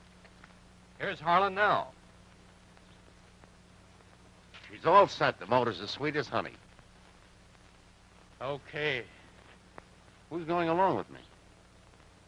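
A man speaks calmly, heard through an old film soundtrack.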